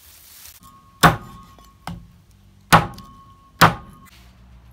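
A heavy cleaver chops down onto a wooden block.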